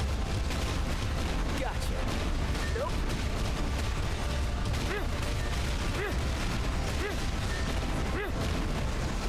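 Game attack effects blast and crackle without a break.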